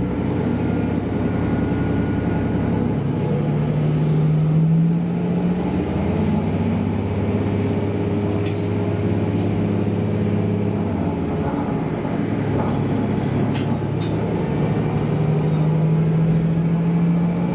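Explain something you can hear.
A train's engine drones steadily, its pitch shifting as the train pulls away.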